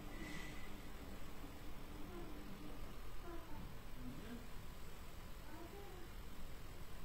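A woman speaks softly and slowly close by.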